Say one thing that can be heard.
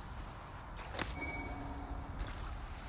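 A short bright chime rings out as an item is picked up.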